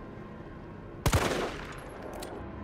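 A rifle fires a loud shot with a short echo.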